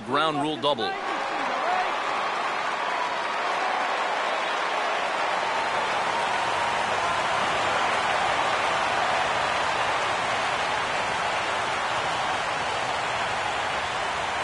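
A stadium crowd cheers and murmurs steadily.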